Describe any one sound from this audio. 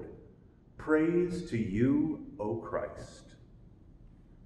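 An older man speaks calmly and clearly into a nearby microphone in an echoing room.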